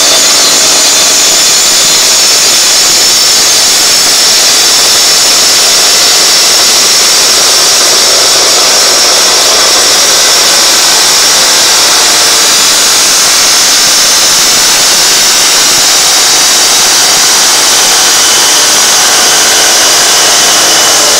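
A grinding wheel whines steadily as it grinds a shell.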